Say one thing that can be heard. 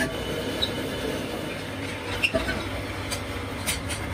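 Metal parts clatter as they are handled.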